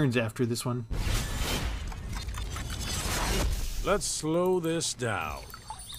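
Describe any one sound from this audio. A deep magical whoosh swells and rumbles.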